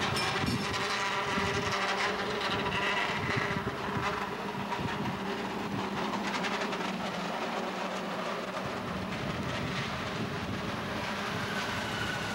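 A cable car rumbles and clatters along its track.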